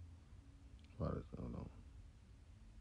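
A young man says a few short words close to a microphone.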